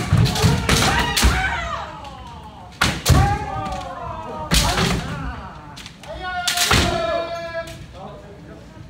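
Young men shout loudly in a large echoing hall.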